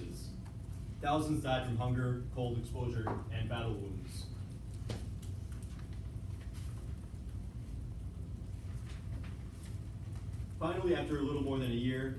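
A young man speaks calmly to a group, heard from a distance.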